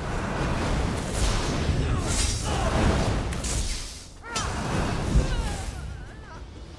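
Magic spells crackle and burst with electric zaps.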